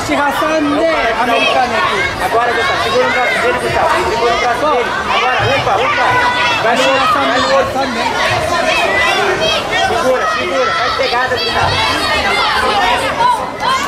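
Many voices of men and women shout and call out at once, echoing in a large hall.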